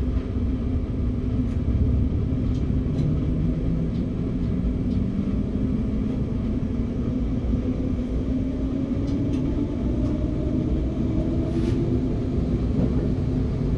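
A train's electric motor whines, rising steadily in pitch as the train speeds up.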